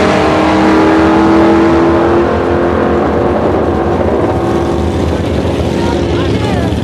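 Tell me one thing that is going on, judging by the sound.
Race car engines roar loudly as cars speed past and fade into the distance.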